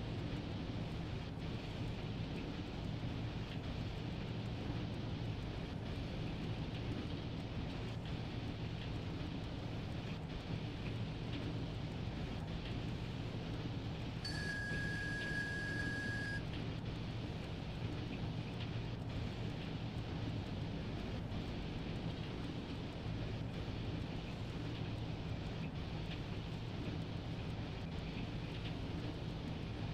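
A locomotive engine hums steadily and low.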